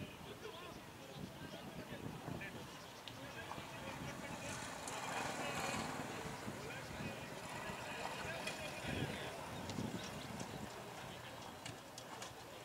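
Men talk casually outdoors at a distance.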